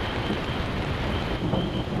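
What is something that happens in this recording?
A torch flame crackles and flickers.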